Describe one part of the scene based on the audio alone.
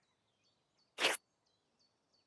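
A water droplet falls with a soft plop.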